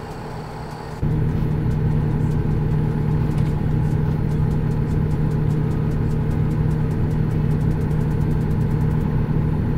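A truck's engine drones louder and closer from inside the cab.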